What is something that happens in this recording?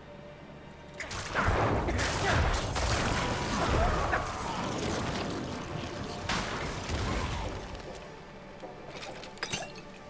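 Weapons clash and spells burst in a loud fight.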